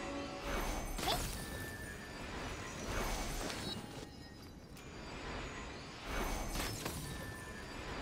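Magic arrows burst with a bright crackling blast.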